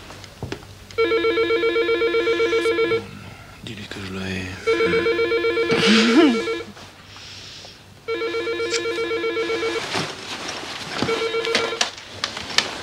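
A telephone rings repeatedly with a bright electric ring.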